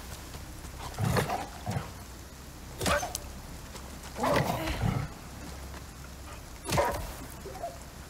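A wooden club thuds against an animal in short blows.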